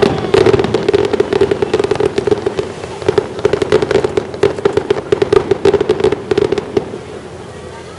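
Sparks from a firework crackle and pop rapidly.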